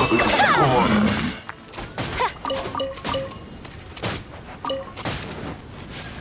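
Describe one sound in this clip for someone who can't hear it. Magic attacks burst and sparkle with sharp electronic zaps.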